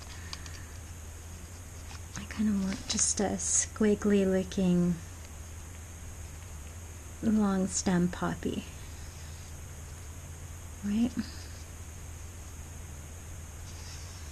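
A felt pen scratches softly on paper.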